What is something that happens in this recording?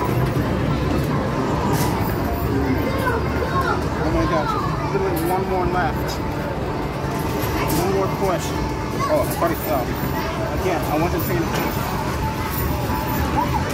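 Coins clink and rattle on a metal tray.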